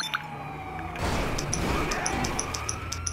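A car crashes into another car with a thud.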